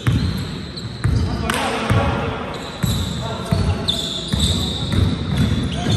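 A basketball bounces repeatedly on a hard court, echoing in a large hall.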